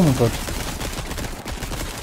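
A gun fires a single loud shot.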